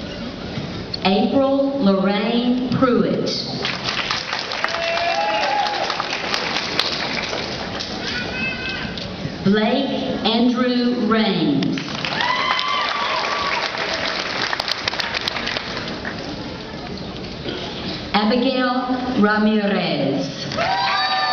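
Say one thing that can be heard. A woman reads out names over a loudspeaker in a large echoing hall.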